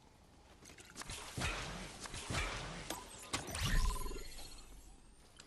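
A shimmering magical burst whooshes and crackles.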